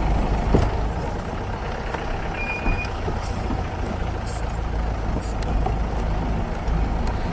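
An engine rumbles steadily as a vehicle drives along a bumpy dirt track.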